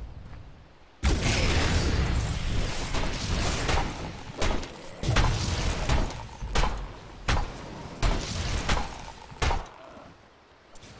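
Game combat effects clash and burst in quick succession.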